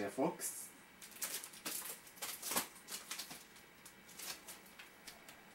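Cardboard record sleeves rustle and tap as they are handled.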